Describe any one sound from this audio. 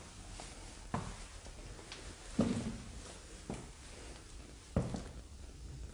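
Footsteps scuff and knock on a hard floor.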